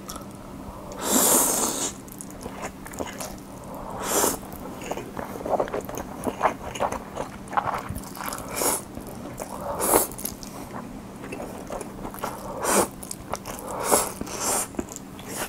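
A young man slurps noodles loudly and close to a microphone.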